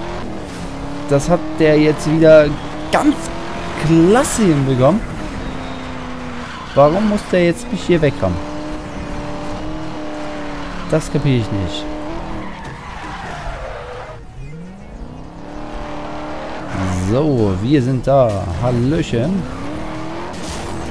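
A sports car engine roars and revs up and down.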